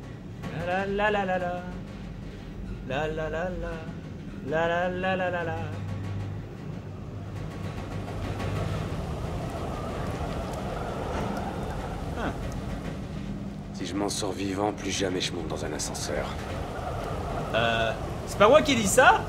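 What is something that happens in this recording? An elevator hums steadily as it rises.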